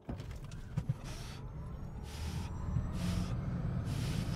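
A car's electric motor whines, rising in pitch as it speeds up.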